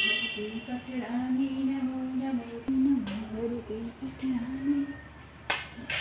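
A woman chants softly nearby.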